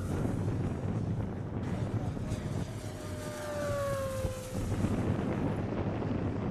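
Wind rumbles across the microphone outdoors.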